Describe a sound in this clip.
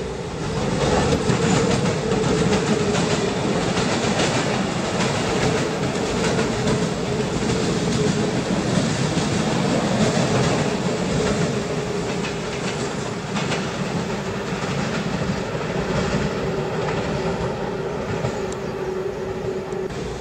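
An electric commuter train runs along the track at speed.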